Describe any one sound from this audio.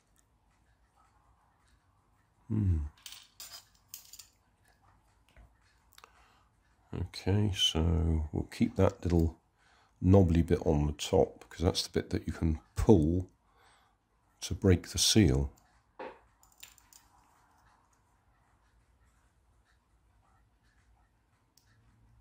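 Small plastic parts click and rustle in hands.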